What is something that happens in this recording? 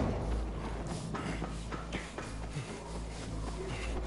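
Steam hisses loudly from a pipe.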